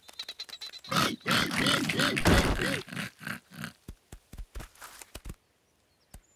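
Pigs snort and laugh loudly.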